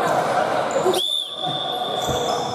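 A referee's whistle blows sharply in an echoing hall.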